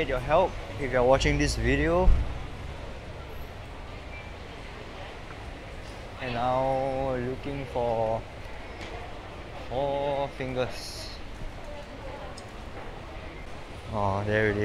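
A crowd murmurs softly in a large indoor space.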